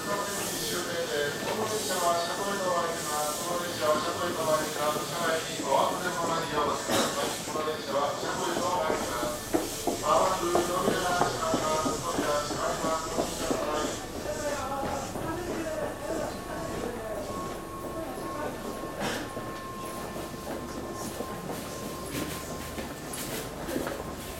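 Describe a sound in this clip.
An electric commuter train rolls slowly past a platform.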